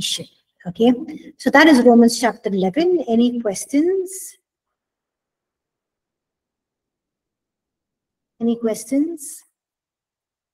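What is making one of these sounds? A middle-aged woman speaks calmly into a headset microphone, heard as if over an online call.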